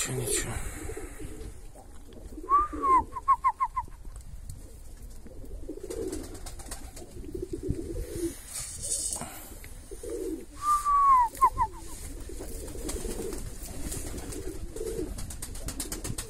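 Domestic pigeons coo softly.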